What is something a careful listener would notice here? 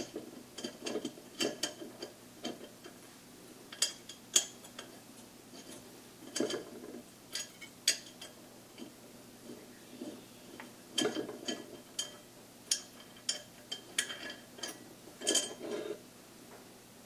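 Small plastic and metal parts click and tap as hands work them into place.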